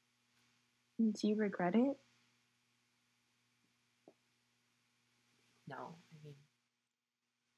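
A second young woman speaks calmly over an online call.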